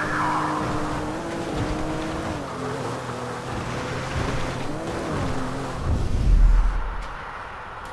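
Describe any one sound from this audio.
A hover bike's engine hums, its pitch wavering up and down.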